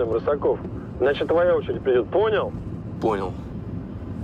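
A man answers briefly into a phone.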